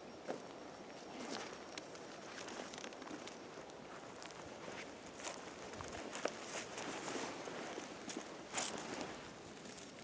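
Footsteps crunch on dry twigs and forest litter.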